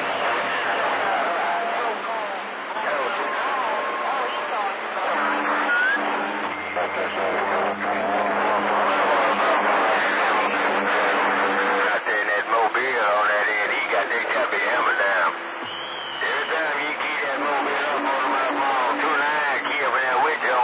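A radio receiver crackles and hisses with static.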